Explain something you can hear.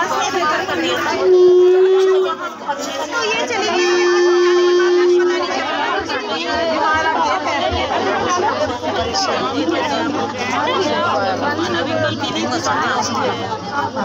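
A crowd of women chatters all around, close by.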